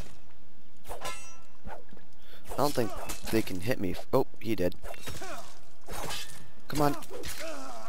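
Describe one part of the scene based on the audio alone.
A sword swishes and slashes.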